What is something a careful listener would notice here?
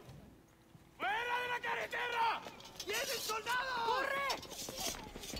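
A man shouts urgently up close.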